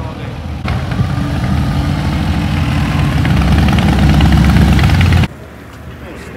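Motorcycle engines rumble loudly as the bikes ride past.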